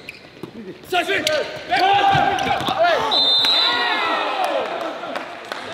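Men shout and cheer loudly in a large echoing hall.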